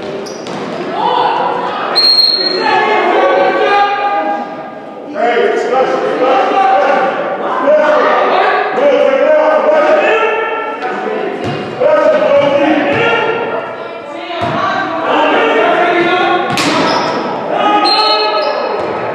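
A man talks steadily close by in a large echoing hall.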